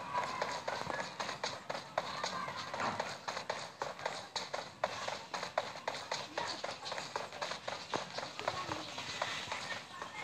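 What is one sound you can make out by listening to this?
Footsteps run quickly through dry grass.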